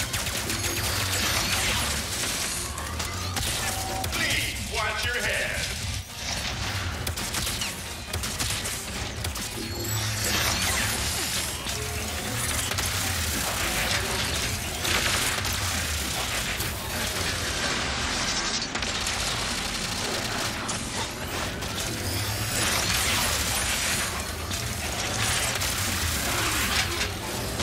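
Guns fire rapid energy blasts over and over.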